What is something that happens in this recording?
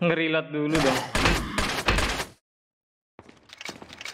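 A pistol fires gunshots.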